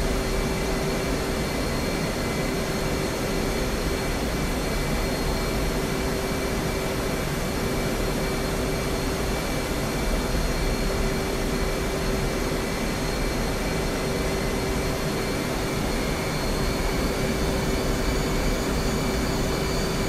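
A steady electronic hum drones in a cockpit.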